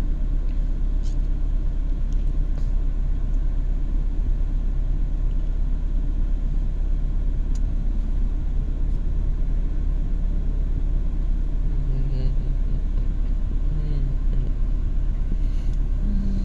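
A car engine idles with a low, steady rumble from inside the car.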